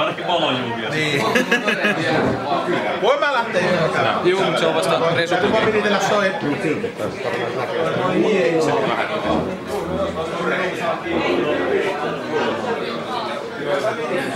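Several people chatter in the background.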